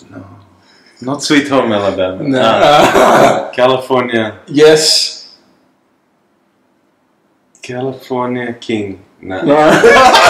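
A man talks with animation close by, now and then laughing.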